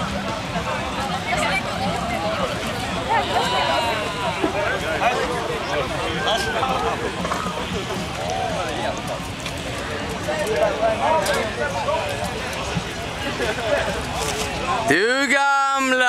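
Many people chatter all around outdoors.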